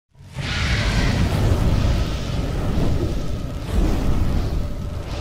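A fire roars with a deep, steady rumble.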